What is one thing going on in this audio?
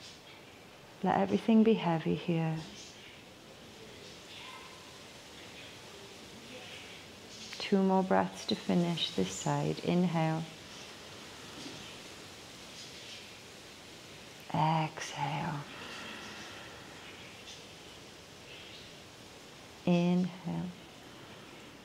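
A young woman speaks calmly and slowly, close to the microphone.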